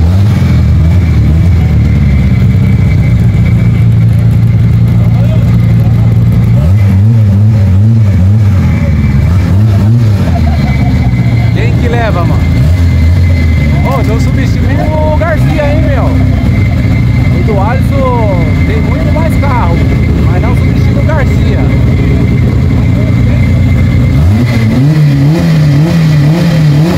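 A race car engine rumbles loudly at idle close by.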